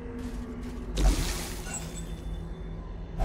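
A torch flares up with a bright whoosh.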